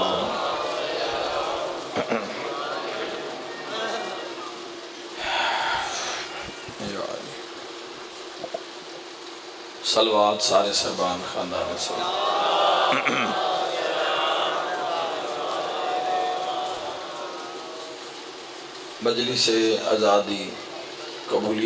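A man recites with emotion into a microphone, heard through loudspeakers with an echo.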